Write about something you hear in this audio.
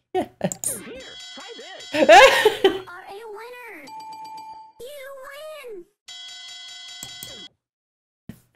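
A computer plays a short, tinny electronic jingle.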